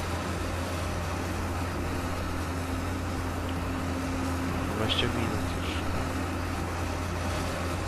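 A large harvester engine drones steadily.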